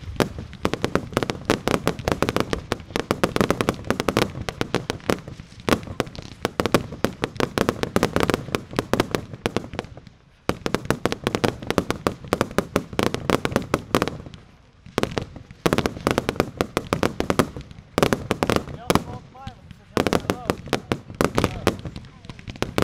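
Fireworks boom as shells burst overhead.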